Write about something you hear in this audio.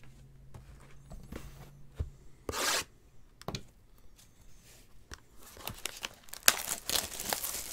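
Plastic wrap crinkles and rustles as a box is unwrapped.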